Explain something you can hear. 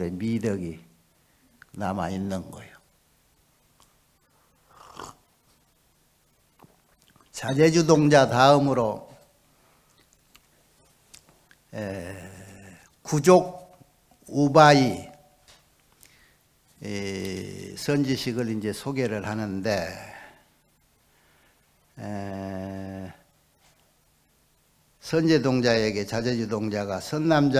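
An elderly man speaks calmly into a microphone, with pauses.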